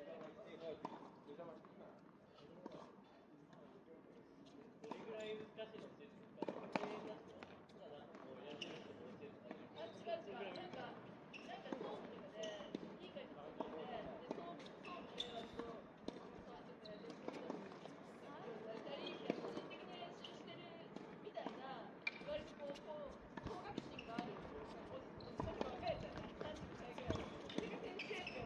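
Tennis balls are struck with rackets.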